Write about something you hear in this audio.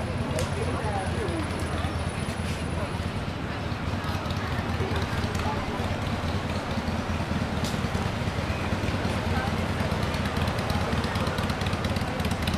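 Traffic rumbles along a nearby street.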